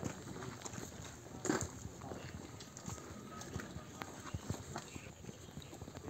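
Footsteps crunch on gravel as several people walk.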